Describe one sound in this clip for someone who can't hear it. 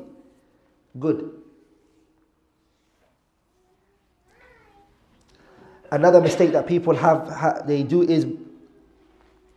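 A man speaks calmly into a microphone in a slightly echoing room.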